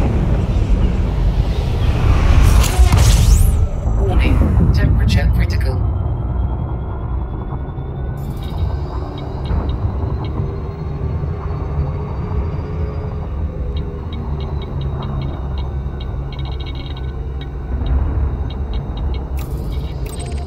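A spaceship engine rumbles deeply.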